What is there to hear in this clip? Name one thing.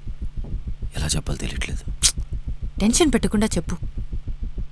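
A young man speaks quietly and calmly.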